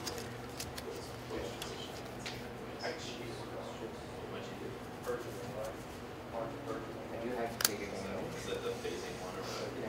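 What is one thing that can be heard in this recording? Hands shuffle a deck of playing cards.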